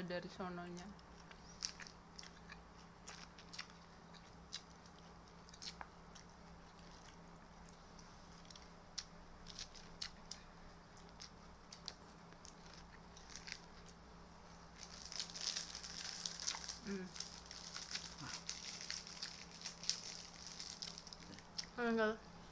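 A young woman chews and crunches food with a crisp crackle.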